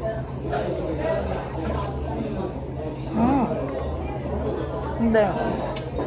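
A young woman chews food softly up close.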